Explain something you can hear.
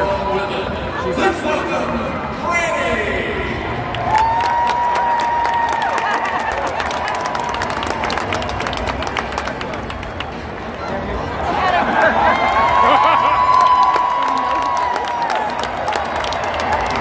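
A large stadium crowd murmurs outdoors.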